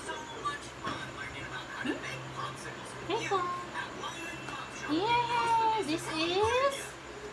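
A young woman talks playfully in a lively, sing-song voice close by.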